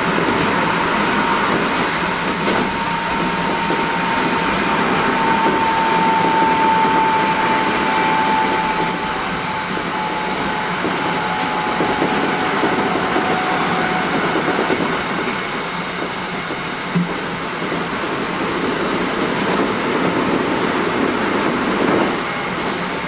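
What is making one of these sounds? A subway train rumbles steadily through a tunnel.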